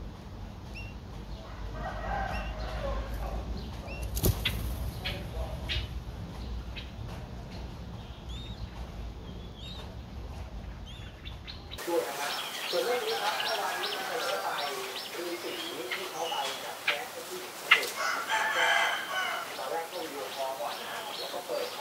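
Small birds chirp and twitter nearby.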